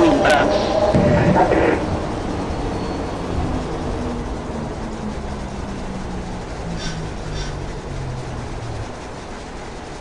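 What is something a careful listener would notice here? An electric train motor whines and slowly falls in pitch as the train slows.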